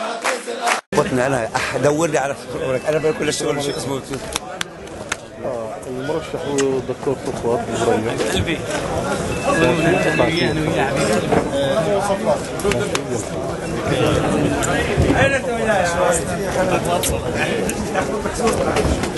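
A crowd of men chatters loudly all around.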